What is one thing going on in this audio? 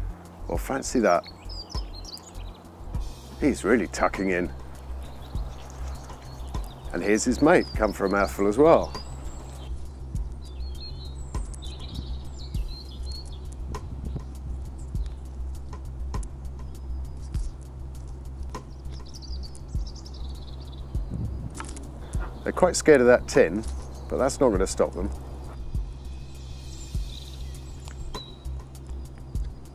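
A crow's beak pecks and taps on paving stones close by.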